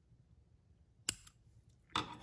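Scissors snip through yarn.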